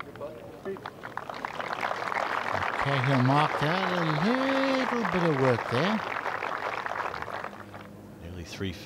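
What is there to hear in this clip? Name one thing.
A large crowd outdoors applauds and cheers, then the applause fades.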